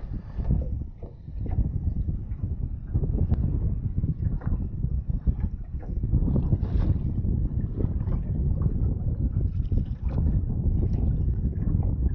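Wind blusters across the water outdoors.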